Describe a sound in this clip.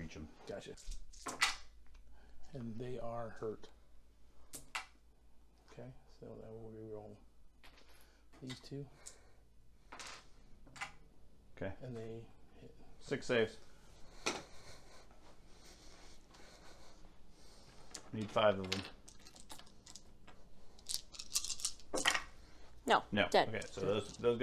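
Dice tumble and clatter softly into a tray.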